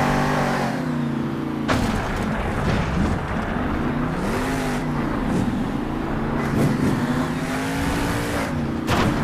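A monster truck engine roars and revs up and down.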